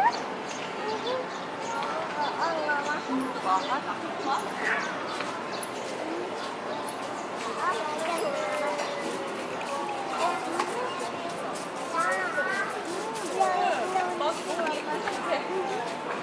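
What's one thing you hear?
Men and women chatter at a distance outdoors.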